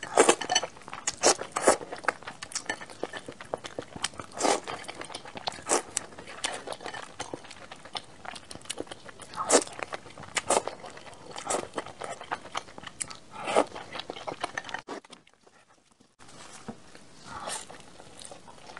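A young woman slurps and chews food close to a microphone, with wet smacking sounds.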